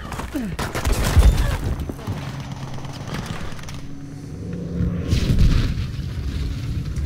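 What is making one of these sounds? Loud explosions boom and rumble nearby.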